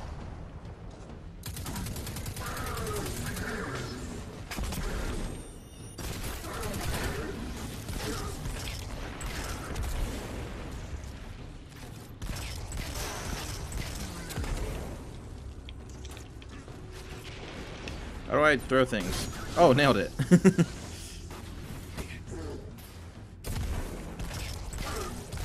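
Rapid gunfire rattles and booms from a video game.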